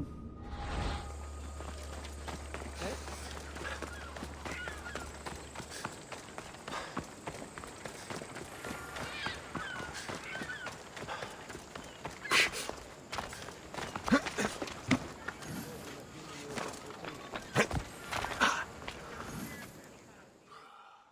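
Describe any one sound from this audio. Footsteps run quickly over dirt and stone.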